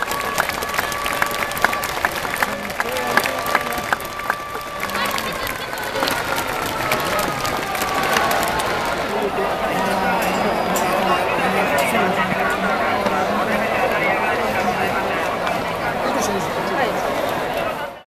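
A large stadium crowd murmurs and chatters in the open air.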